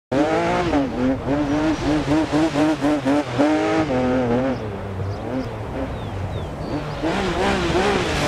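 A rally car engine revs hard, rising and falling in pitch as it shifts gears.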